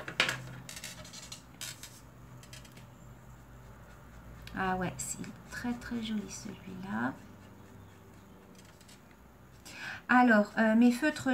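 A felt-tip marker scratches softly across paper.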